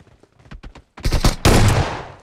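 A rifle fires a loud burst of shots.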